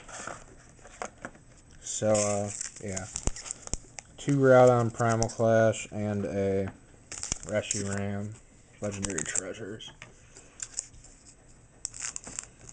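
Foil card packs crinkle as they are handled.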